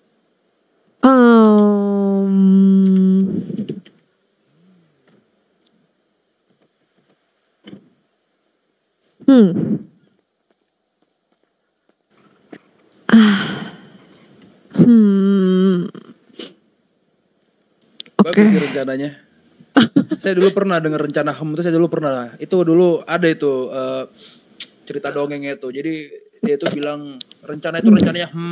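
A young woman talks and laughs animatedly into a close microphone.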